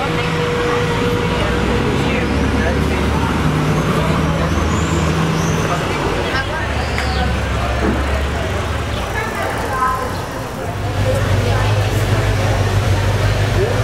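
People chatter in the street nearby.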